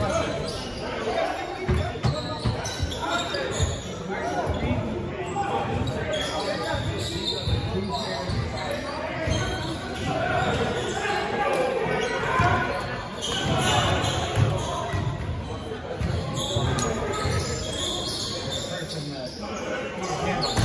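A basketball bounces on a hardwood floor, echoing in a large hall.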